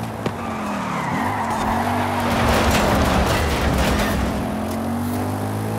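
Tyres screech and skid on the road.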